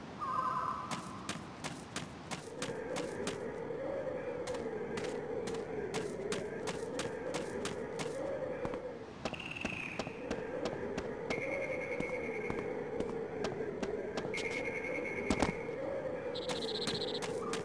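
Footsteps patter quickly over grass and wood.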